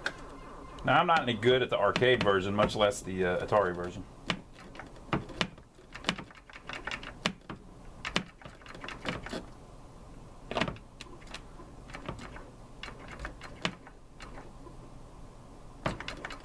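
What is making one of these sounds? A joystick button clicks repeatedly.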